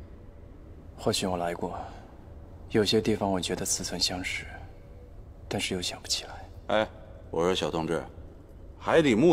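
A young man speaks quietly close by.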